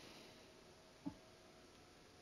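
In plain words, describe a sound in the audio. A soft menu click sounds as a selection changes.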